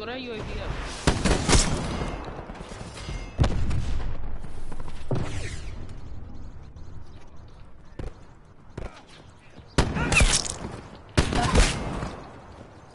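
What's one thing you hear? Gunfire rattles in loud, rapid bursts.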